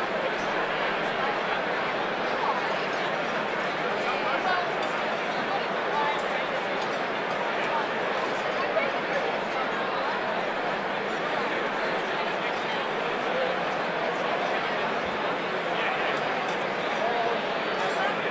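A large crowd of men and women chatters steadily in a big echoing hall.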